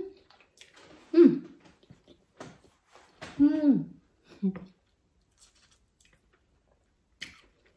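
A woman chews food with soft wet smacking.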